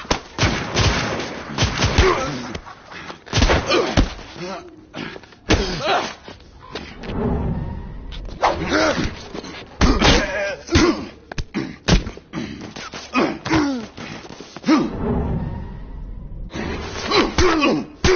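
A man grunts and shouts with strain, close by.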